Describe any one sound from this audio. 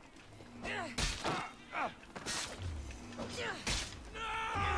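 Swords clash and strike sharply several times.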